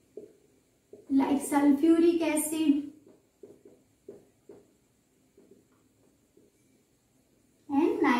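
A young woman speaks nearby.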